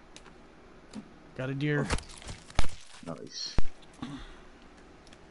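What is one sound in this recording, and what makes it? An axe strikes flesh with heavy thuds.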